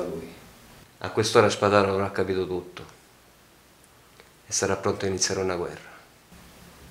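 A deeper-voiced man speaks slowly and close by.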